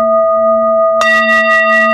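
A singing bowl is struck with a mallet and rings out brightly.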